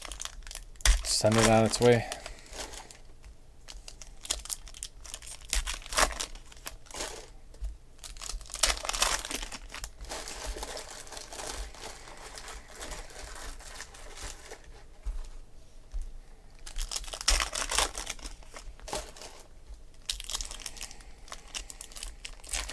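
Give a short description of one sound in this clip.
Foil wrappers crinkle and tear as packs are opened.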